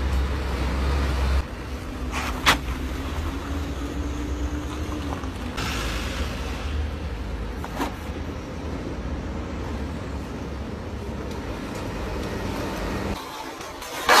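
Car engines rumble as cars drive past.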